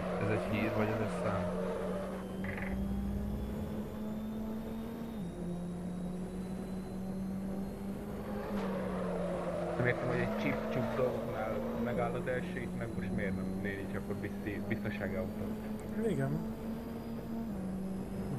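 A racing car engine drones steadily, its pitch stepping up and down as gears change.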